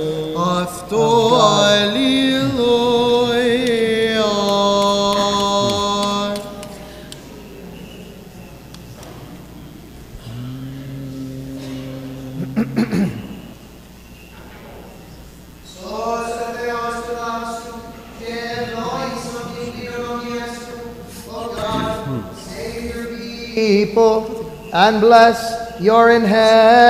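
A choir sings a slow chant in a large echoing hall.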